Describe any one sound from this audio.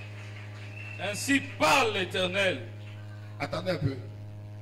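A man speaks through a microphone in a slow, preaching manner.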